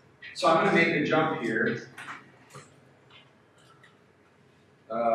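A man speaks with animation to a room, his voice echoing slightly.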